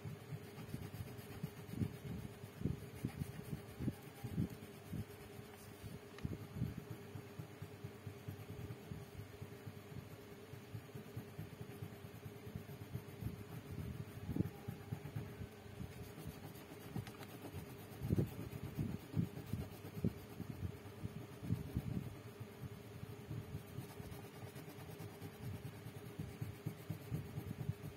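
A coloured pencil scratches across paper in short strokes, close by.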